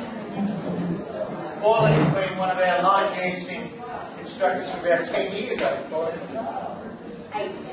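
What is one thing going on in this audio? A middle-aged man reads out loud in an echoing hall.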